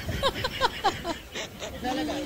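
A young woman laughs heartily close to a microphone.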